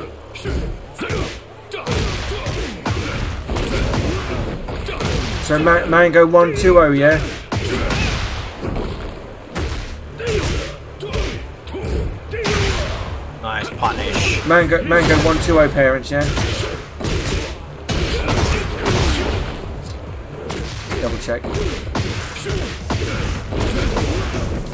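Game fighters land punches and kicks with sharp impact sounds.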